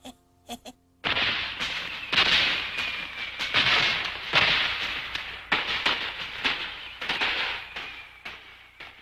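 Fireworks burst and crackle overhead.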